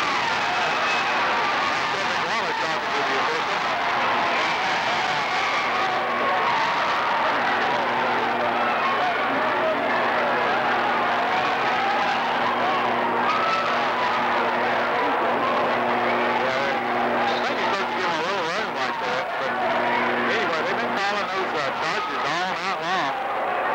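A large crowd cheers and chatters loudly in an echoing gym.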